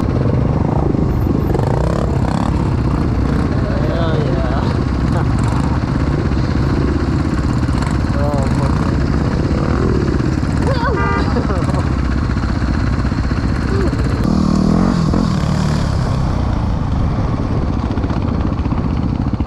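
A dirt bike engine idles and revs close by, loud and continuous.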